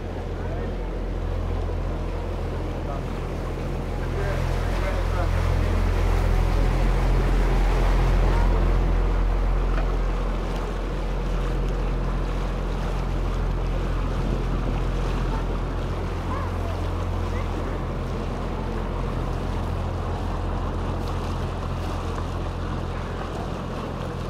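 A boat's motor hums steadily at a low pitch.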